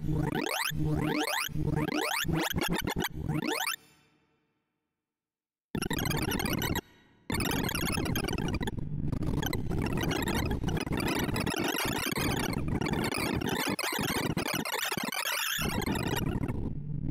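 Rapid electronic tones sweep upward in quick runs, then break into a dense, fast chatter of bleeps.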